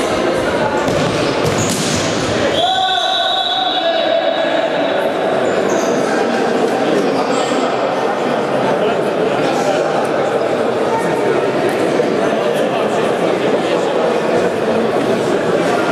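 Men shout and call out across a large echoing hall.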